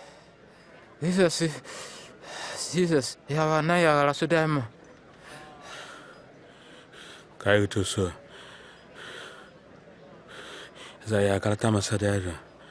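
A man cries out loudly in anguish, his voice straining.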